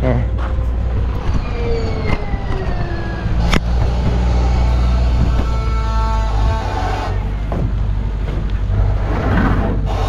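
A loader's engine rumbles steadily nearby.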